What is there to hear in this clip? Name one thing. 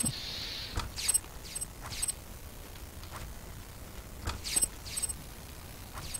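Coins clink as cash is picked up.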